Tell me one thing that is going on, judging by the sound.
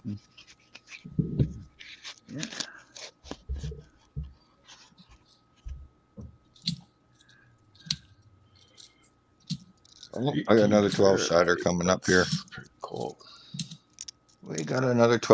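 Coins clink as they are handled.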